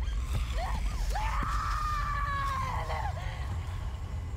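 A young woman screams loudly in distress.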